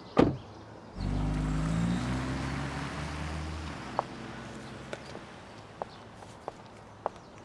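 A car engine starts and the car drives away.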